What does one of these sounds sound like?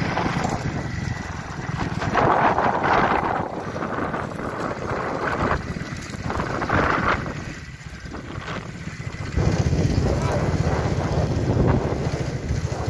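Horse hooves thud on soft dirt as horses trot past close by.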